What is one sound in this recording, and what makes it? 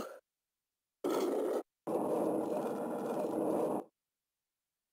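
A heavy stone block grinds as it slides.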